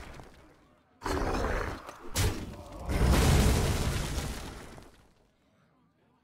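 A game creature attacks with a crashing blast.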